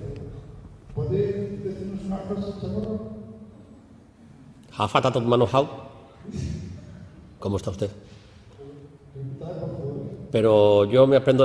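An elderly man speaks with animation through a handheld microphone.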